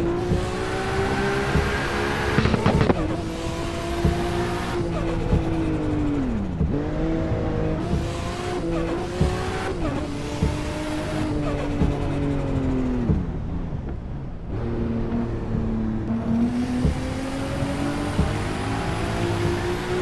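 A racing car engine roars, revving up and dropping as it shifts gears.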